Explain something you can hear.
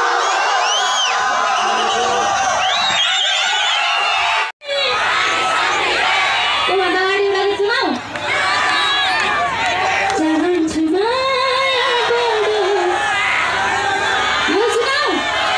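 A young woman sings through a microphone over loudspeakers.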